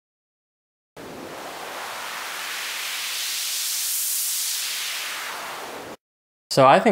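A synthesizer plays a hissing noise sweep that swells and fades.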